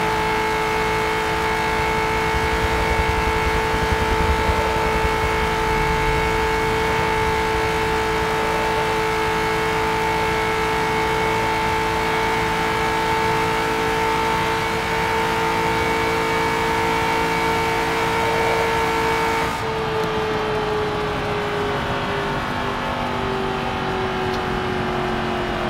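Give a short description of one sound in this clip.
A racing car engine whines at a steady high pitch, then drops lower as it slows.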